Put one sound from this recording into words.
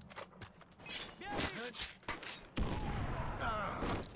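A knife slashes and thuds into flesh.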